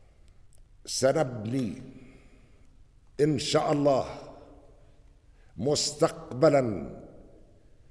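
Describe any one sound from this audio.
An elderly man speaks forcefully into a microphone, in short bursts with pauses, in a room with a slight echo.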